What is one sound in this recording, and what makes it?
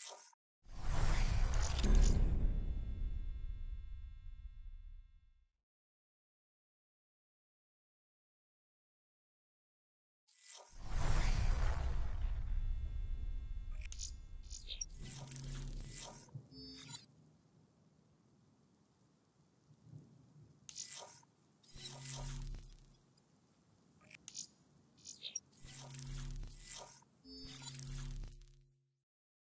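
Deep whooshing menu sounds swell and fade away.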